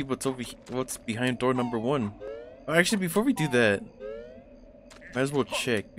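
Bright game chimes sparkle as items are picked up.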